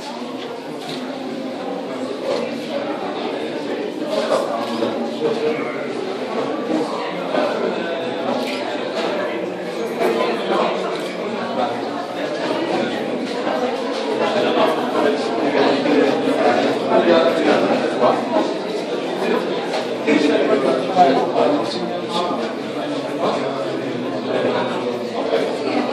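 A crowd of visitors chatters in an echoing room.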